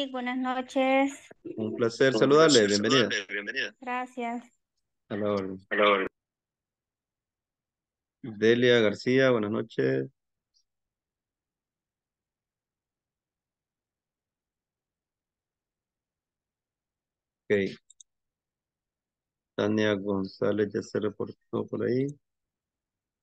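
A man speaks calmly through an online call, with pauses.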